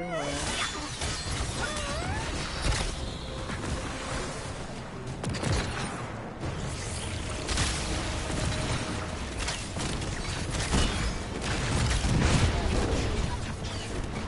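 Explosions boom and crash repeatedly.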